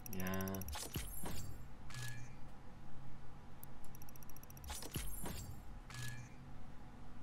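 A game menu plays a bright purchase chime twice.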